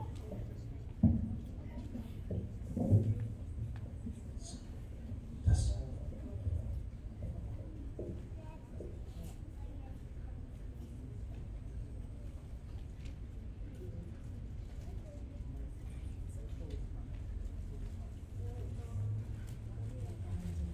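A crowd of young people murmurs and chatters in a large echoing hall.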